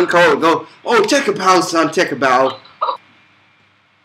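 A young man speaks with animation close to a webcam microphone.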